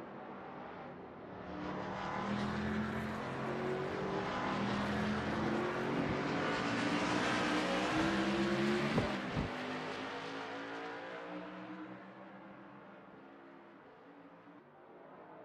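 Race car engines roar at high speed, rising and falling in pitch.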